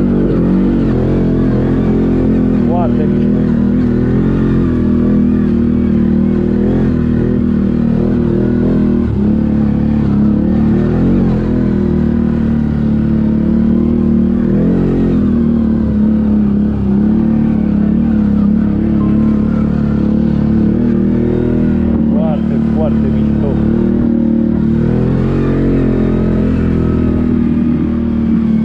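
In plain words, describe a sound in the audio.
A quad bike engine rumbles steadily close by, rising and falling as it climbs.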